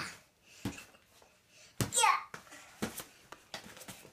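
A young boy laughs nearby.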